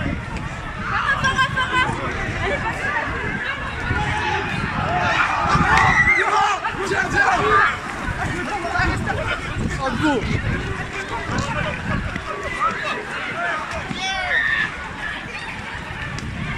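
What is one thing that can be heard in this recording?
A crowd of young men shout and call out outdoors.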